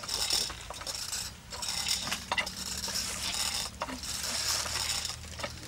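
Large leaves rustle in the wind outdoors.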